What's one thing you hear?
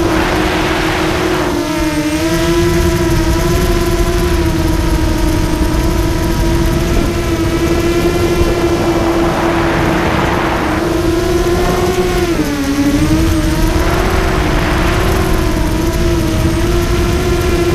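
Small drone propellers whine steadily, the pitch dipping briefly now and then.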